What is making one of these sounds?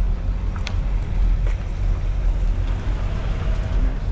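A van's engine rumbles as it drives past close by.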